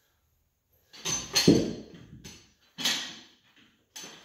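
Iron weight plates clank as a barbell is lifted from the floor.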